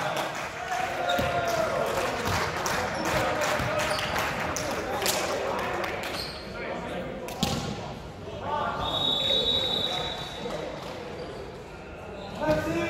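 Young men talk and call out to each other in a large echoing gym.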